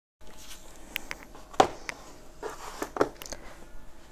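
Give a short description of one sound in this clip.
Tablet cases knock and clack as they are set down on a table.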